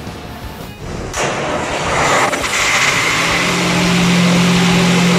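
A diesel engine starts up and runs with a loud roar.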